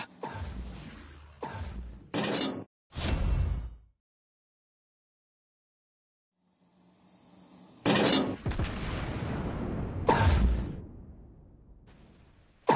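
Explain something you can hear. Heavy naval guns fire in loud, booming salvos that echo and fade.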